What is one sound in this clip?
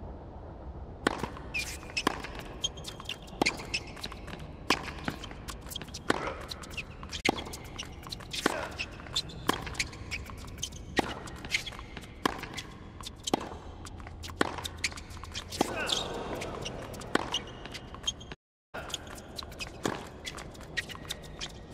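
Tennis balls are struck with a sharp pop, back and forth in a rally.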